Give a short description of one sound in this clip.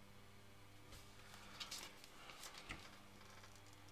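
A sheet of paper rustles as it is lifted.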